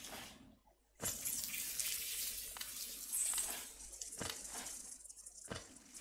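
Rain hisses steadily.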